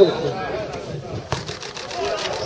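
A ball is kicked with a dull thump.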